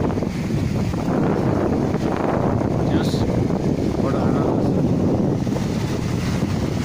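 Waves wash and splash against rocks close by.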